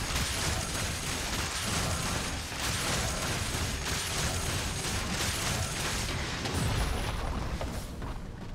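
Video game spell effects crackle and burst in a busy fight.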